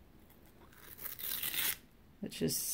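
A paper seal peels off a jar with a rustle.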